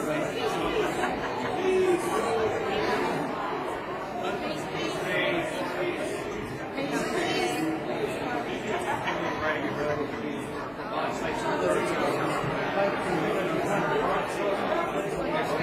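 A robed choir sings together in a large echoing hall.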